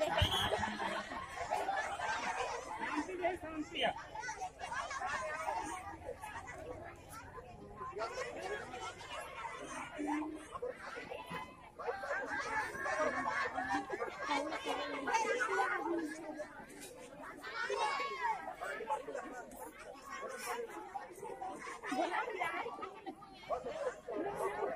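A large outdoor crowd of men, women and children chatters and shouts nearby.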